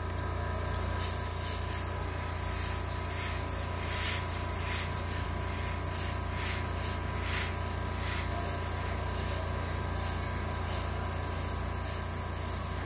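An airbrush hisses softly in short spurts of spray.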